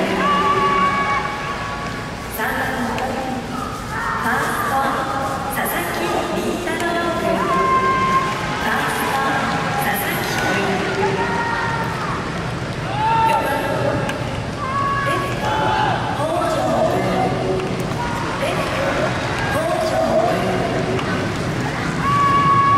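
Young men call out to each other outdoors in an open stadium.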